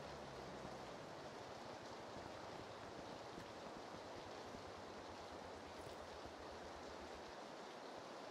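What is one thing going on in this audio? Footsteps thud quickly down stairs.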